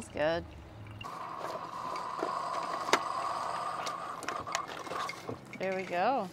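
A coffee maker hums and hisses as it brews.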